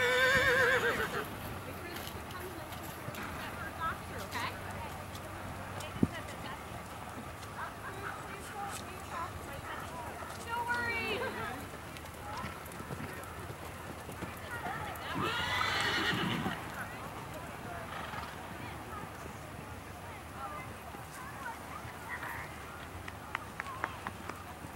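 A horse canters on soft sand, its hooves thudding.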